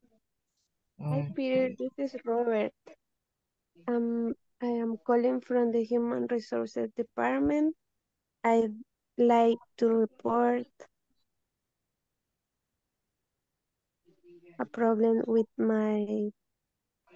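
A man speaks calmly over an online call, reading out in bursts with pauses.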